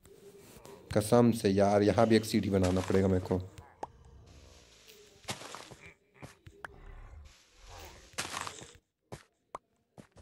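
Dirt crunches in short bursts as it is dug away.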